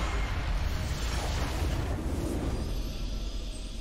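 A loud crackling explosion roars and slowly fades.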